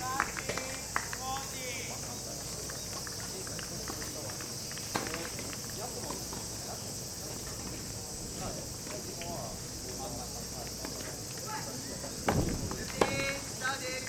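Tennis balls are struck with rackets, popping sharply.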